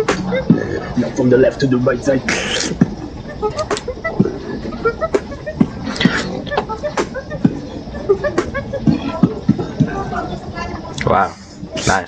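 A young man beatboxes close to a microphone, with sharp clicks, thumps and hisses.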